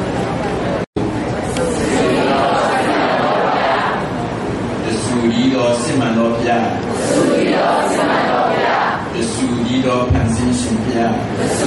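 An elderly man speaks calmly into a microphone in an echoing room.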